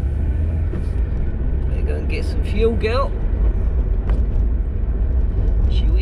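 A car engine hums low and steady.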